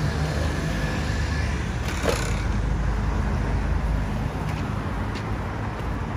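Footsteps tap on pavement nearby.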